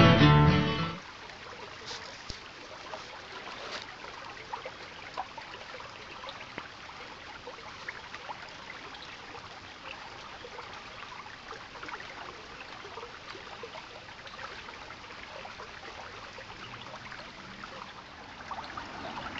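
Water in a shallow stream trickles and babbles close by.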